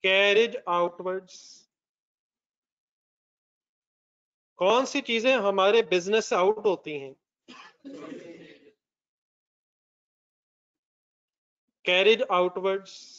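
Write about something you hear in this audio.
A man explains calmly into a close microphone, with pauses between phrases.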